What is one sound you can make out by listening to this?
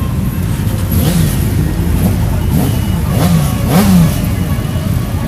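A motorcycle engine revs up sharply a few times.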